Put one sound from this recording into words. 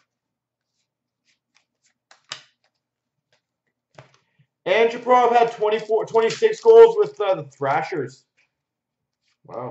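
Trading cards rustle and click softly as they are handled.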